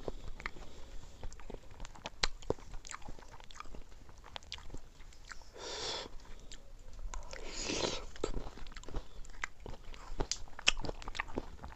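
Fingers squish and scrape through soft wet rice, with sharp clicks close up.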